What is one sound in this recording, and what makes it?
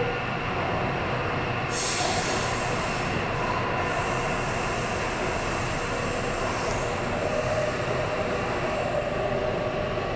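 A train rumbles and roars steadily along the tracks.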